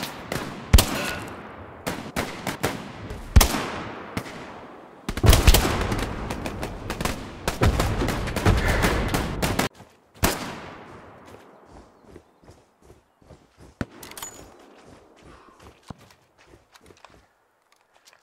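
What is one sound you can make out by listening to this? Gunshots crack loudly and echo through an open forest.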